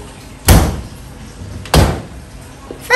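A glass cabinet door knocks and rattles.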